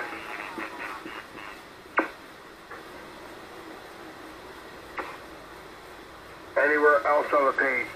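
Radio static hisses steadily in the background.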